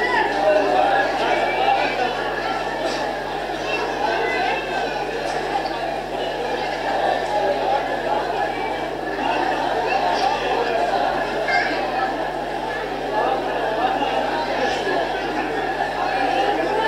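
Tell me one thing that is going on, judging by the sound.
A crowd of young men chant loudly together.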